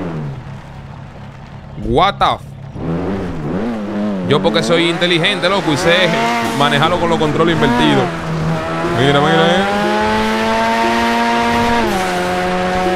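A car engine revs hard and climbs through the gears.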